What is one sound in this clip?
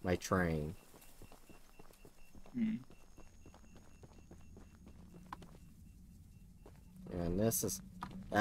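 Footsteps crunch over dry grass and gravel.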